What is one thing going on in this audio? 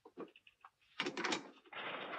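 A door handle clicks as a door opens.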